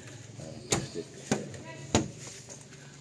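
Cabinet doors thud and click as a hand opens and shuts them.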